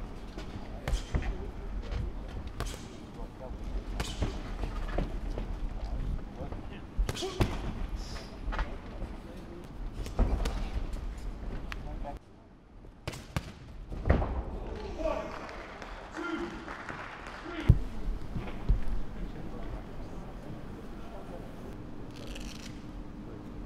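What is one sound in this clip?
Boxing gloves thud with punches and blocks.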